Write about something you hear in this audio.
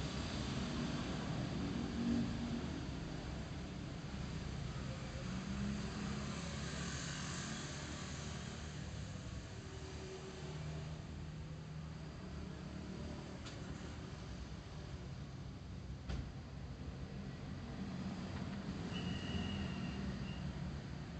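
Wind rushes past as the motorbike moves.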